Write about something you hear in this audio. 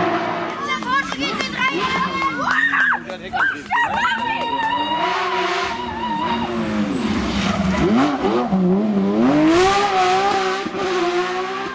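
A rally car engine roars and revs hard, its pitch rising and falling sharply.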